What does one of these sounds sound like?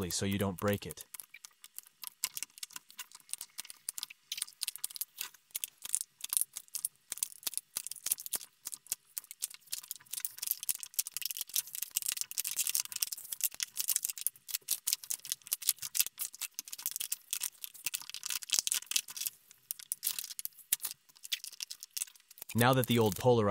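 Plastic film crinkles and rustles as it is handled.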